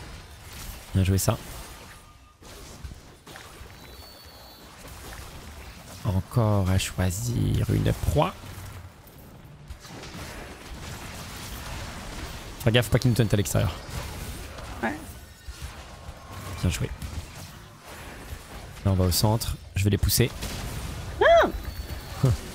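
Game spell effects whoosh and crackle in bursts.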